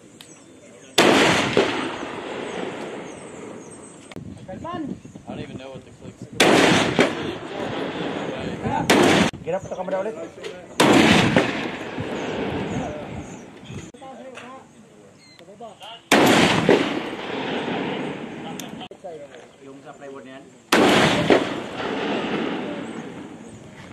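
A large rifle fires loud booming shots that echo and roll away outdoors.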